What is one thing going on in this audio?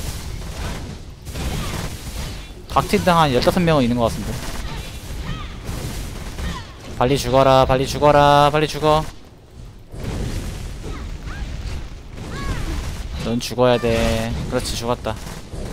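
Sharp blasts and impacts crash in quick succession.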